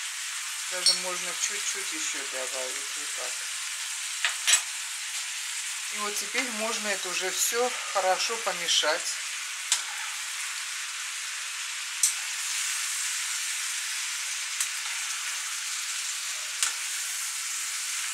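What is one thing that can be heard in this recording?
Food sizzles steadily in a frying pan.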